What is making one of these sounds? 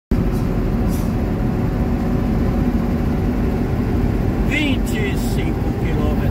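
A vehicle's engine rumbles steadily while driving along a road.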